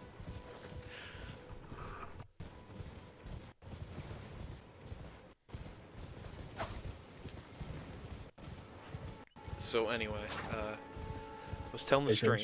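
A horse's hooves thud on soft ground at a gallop.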